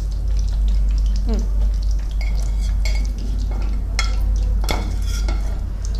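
Oil sizzles in a pan.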